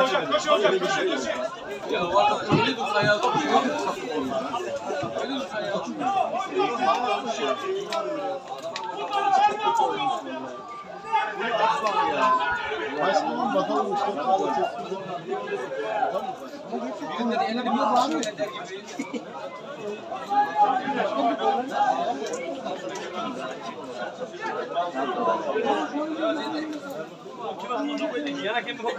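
A crowd of men chatters and calls out close by, outdoors.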